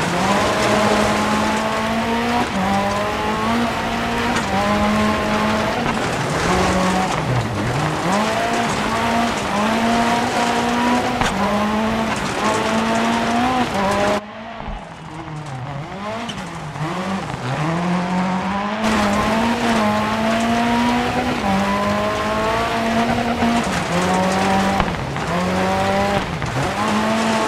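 Tyres crunch and spray over loose gravel.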